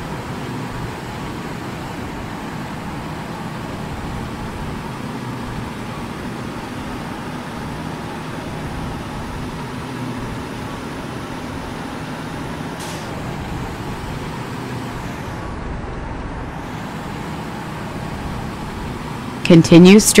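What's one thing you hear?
A truck engine hums steadily as it drives along a road.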